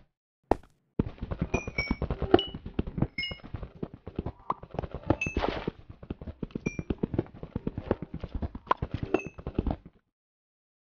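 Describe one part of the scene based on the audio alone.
A pickaxe chips rapidly at stone.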